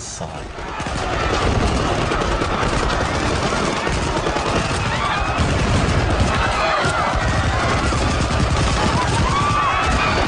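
A large crowd shouts and clamours.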